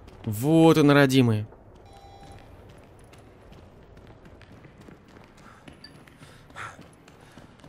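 Footsteps climb hard stairs.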